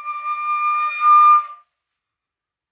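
A flute plays a held note close by and stops.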